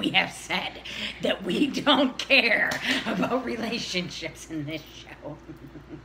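Two women laugh loudly together.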